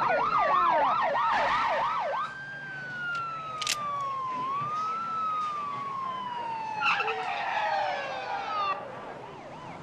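A police siren wails nearby, then slowly drops in pitch.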